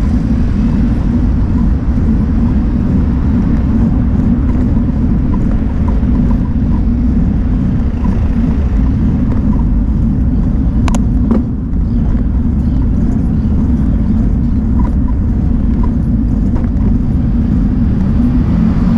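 Wind rumbles steadily across a microphone moving along outdoors.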